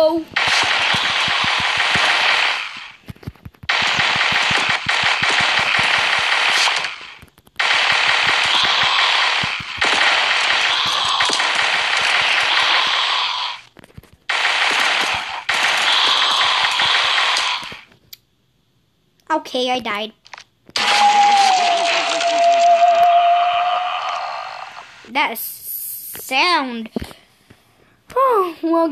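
A boy talks excitedly and close to a microphone.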